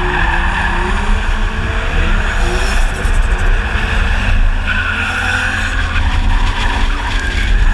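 Tyres squeal on tarmac.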